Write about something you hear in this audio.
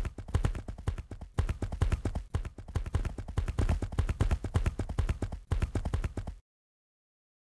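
Horse hooves clop steadily on a hard floor.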